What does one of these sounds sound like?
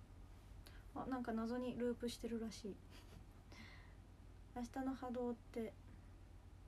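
A young woman speaks softly and close, in short bursts.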